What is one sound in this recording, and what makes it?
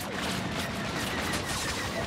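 An explosion bursts against a starship's hull.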